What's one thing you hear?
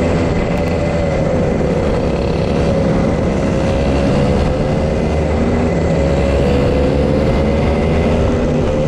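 A go-kart engine whines steadily close by, rising and falling slightly in pitch.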